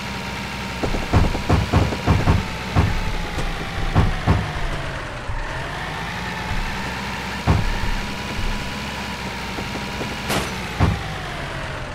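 Metal crunches and bangs as vehicles crash together.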